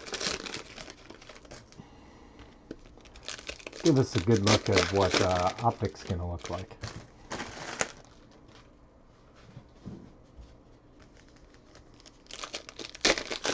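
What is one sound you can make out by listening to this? A foil card pack crinkles and rustles in hands.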